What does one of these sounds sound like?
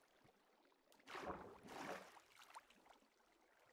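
Water splashes as something moves through it.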